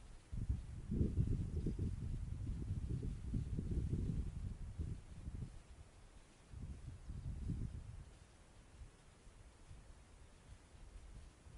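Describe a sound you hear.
Wind gusts rumble across an open field outdoors.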